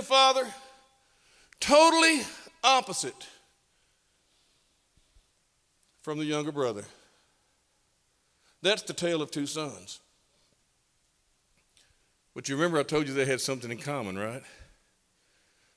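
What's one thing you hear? A middle-aged man speaks expressively into a microphone, in bursts with pauses.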